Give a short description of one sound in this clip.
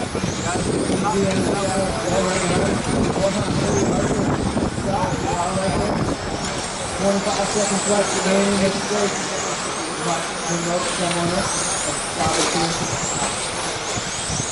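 Men chat nearby outdoors.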